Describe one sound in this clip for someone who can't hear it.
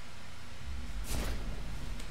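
A magic spell bursts with a sudden rushing whoosh.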